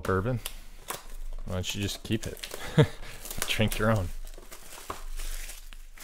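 Plastic wrap crinkles and tears.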